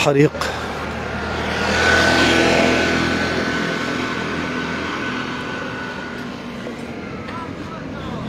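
A motorcycle engine rumbles as it passes close by.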